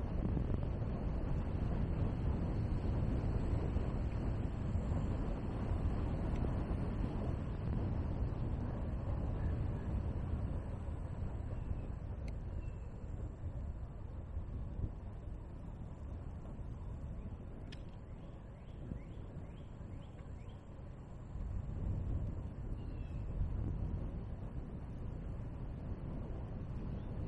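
Tyres hiss steadily on a wet road as a vehicle drives along.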